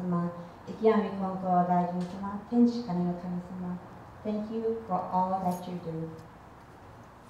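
A young woman reads aloud calmly through a microphone.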